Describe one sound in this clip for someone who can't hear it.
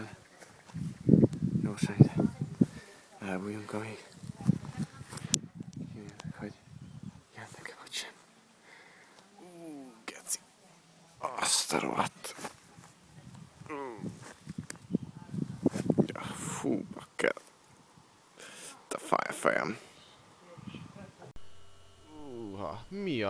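A man talks close by, calmly and with pauses.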